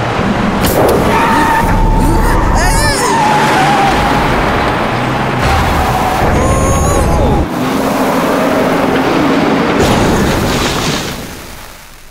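Tyres skid and spin through loose sand.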